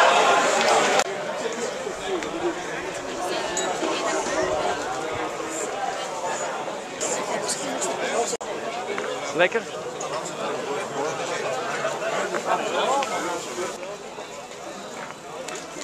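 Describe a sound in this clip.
A crowd of people talks outdoors in the background.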